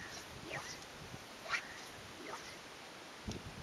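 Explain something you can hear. A fishing line swishes through the air during a cast.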